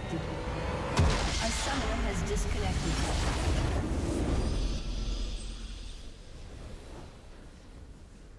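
A triumphant musical sting swells and fades.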